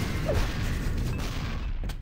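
Game explosions boom and crackle.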